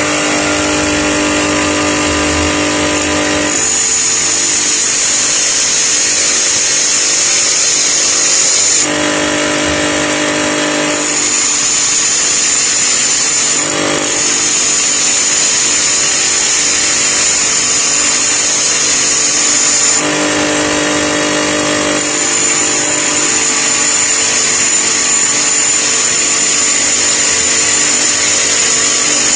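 A bench grinder motor hums steadily.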